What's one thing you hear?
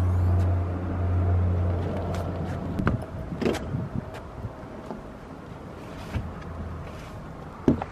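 Bags thump into the boot of a car.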